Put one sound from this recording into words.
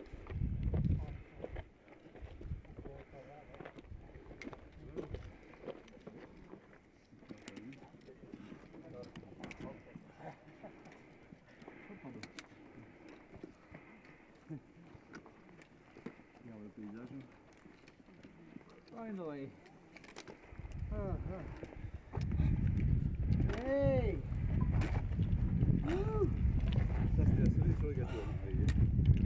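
Footsteps crunch on loose stones.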